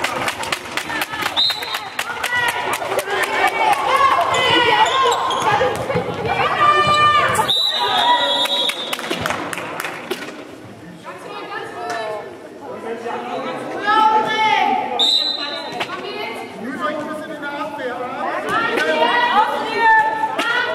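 Young women players shout to each other in an echoing hall.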